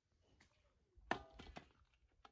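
A metal plate clinks down on a stone surface.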